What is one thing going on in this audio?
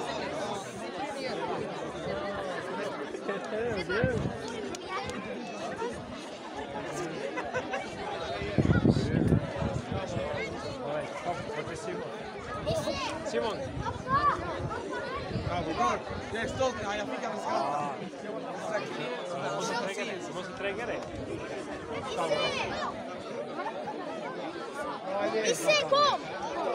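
A crowd of children and adults chatters outdoors all around.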